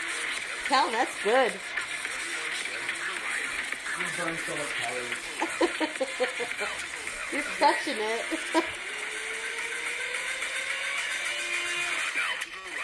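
Upbeat electronic music plays quietly from a small phone speaker.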